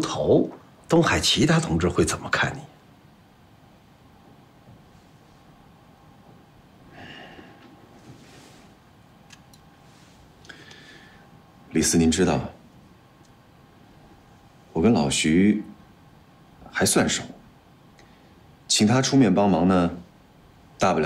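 A middle-aged man speaks calmly and deliberately, close by.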